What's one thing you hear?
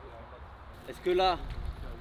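A man speaks briefly close by.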